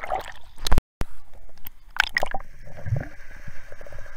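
Water splashes and sloshes at the surface.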